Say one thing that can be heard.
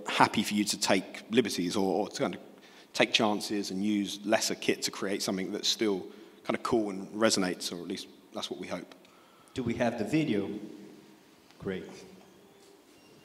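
A man speaks calmly into a microphone, heard through loudspeakers.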